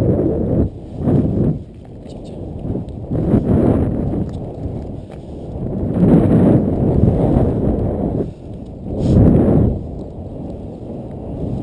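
Wind buffets the microphone in strong gusts outdoors.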